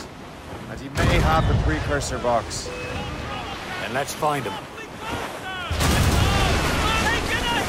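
Cannons fire with deep booms.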